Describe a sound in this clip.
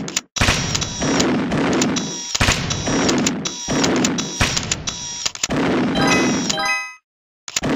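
Electronic blaster shots fire in quick bursts.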